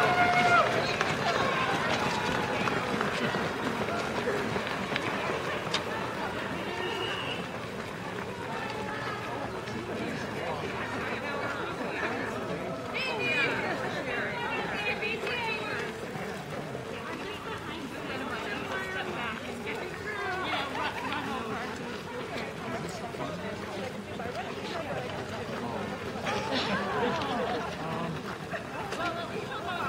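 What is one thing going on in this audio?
Running feet patter on pavement.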